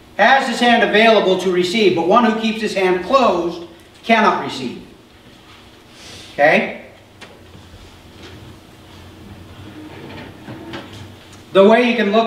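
A middle-aged man speaks with animation through a microphone in a large room, pausing now and then.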